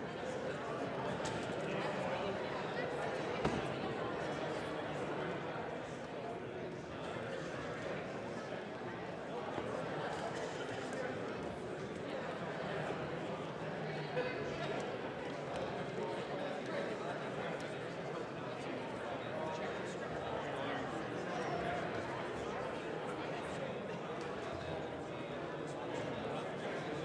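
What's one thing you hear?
A crowd of people chatter in a large echoing hall.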